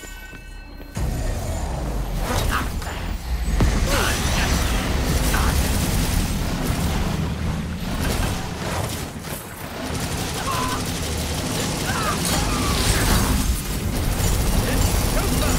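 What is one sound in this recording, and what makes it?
Sword slashes and blows strike in quick bursts.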